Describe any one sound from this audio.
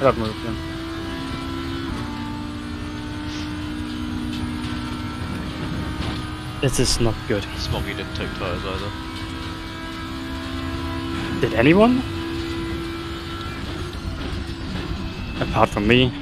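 A racing car engine drones steadily at high revs.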